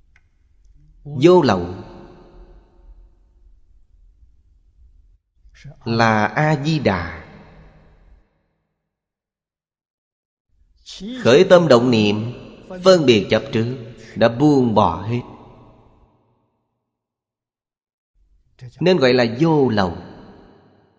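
An elderly man speaks calmly and slowly into a close microphone, pausing between phrases.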